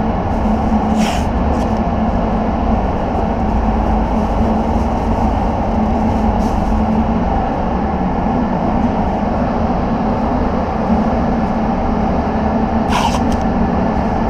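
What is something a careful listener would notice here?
Masking tape is pulled from a roll and torn off.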